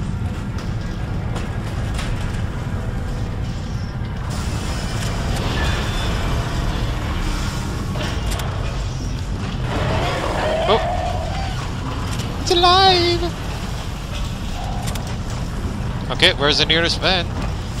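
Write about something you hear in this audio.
A deep machinery hum drones steadily.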